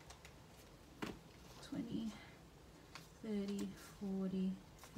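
Paper banknotes rustle and crinkle in hands.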